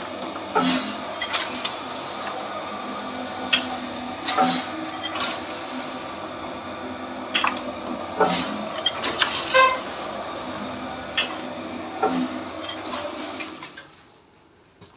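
A machine motor runs with a steady hum and rattle.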